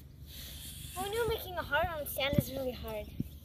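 A young girl speaks brightly close by.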